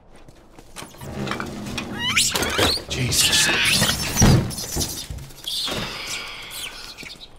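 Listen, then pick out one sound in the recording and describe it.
A monkey shrieks and chatters.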